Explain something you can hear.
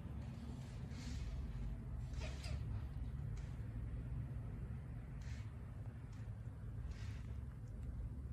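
A kitten mews softly now and then.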